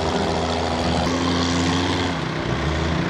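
A tractor engine chugs nearby.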